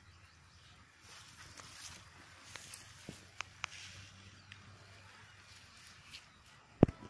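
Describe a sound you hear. Dry grass rustles and crackles underfoot.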